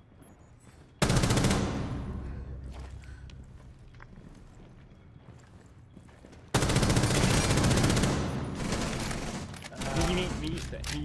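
A rifle fires rapid loud bursts.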